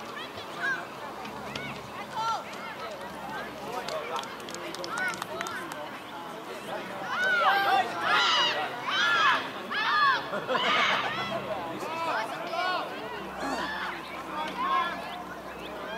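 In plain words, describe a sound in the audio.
Young children shout and call out to each other outdoors.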